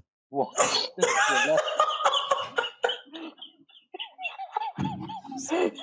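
Two young men laugh heartily.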